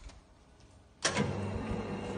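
A metal click sounds as the machine starts.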